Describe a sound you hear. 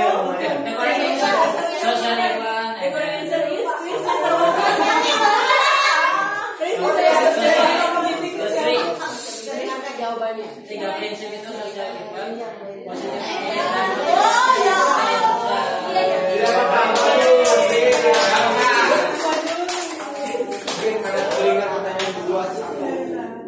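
A woman speaks with animation to a group.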